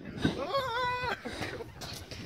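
A young man whoops loudly nearby.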